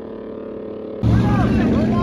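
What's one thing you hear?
A car engine revs up loudly close by.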